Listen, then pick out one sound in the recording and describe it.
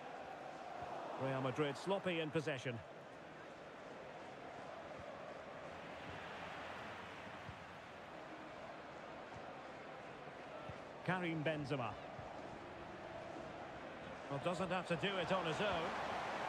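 A stadium crowd murmurs steadily in the distance.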